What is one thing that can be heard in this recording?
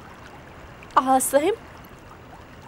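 A young woman speaks urgently, close by.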